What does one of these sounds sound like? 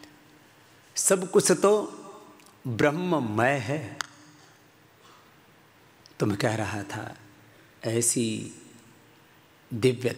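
A man speaks with animation into a microphone, in bursts with pauses, his voice echoing slightly.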